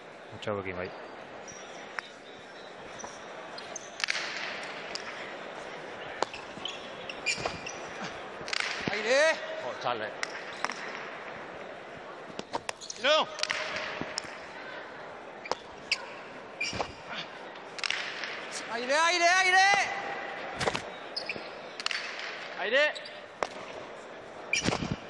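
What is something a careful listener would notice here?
A hard ball smacks sharply against a wall, echoing through a large hall.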